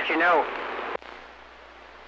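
A radio's squelch clicks off sharply.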